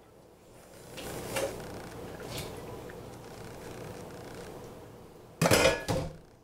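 Water runs into a sink.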